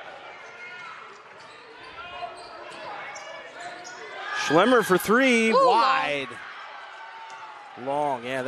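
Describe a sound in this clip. A crowd of spectators murmurs in an echoing gym.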